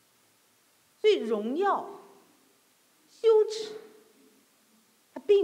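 A middle-aged woman speaks calmly into a microphone in short phrases.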